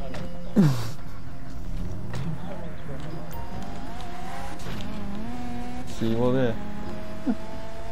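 A car engine revs and drives off.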